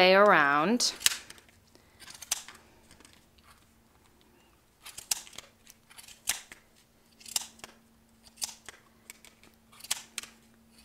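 Scissors snip repeatedly through yarn, close by.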